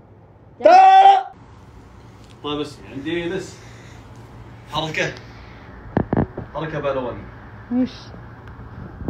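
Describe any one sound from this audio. A young man shouts and laughs loudly up close.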